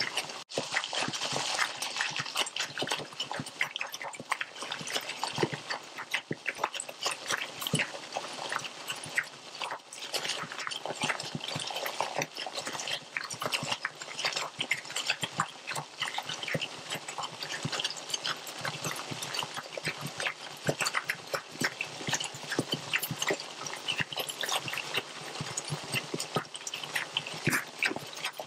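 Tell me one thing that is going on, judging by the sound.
A covered pot of liquid simmers and bubbles steadily.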